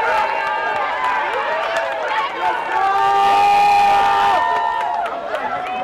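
A crowd of young women cheers and shouts excitedly outdoors.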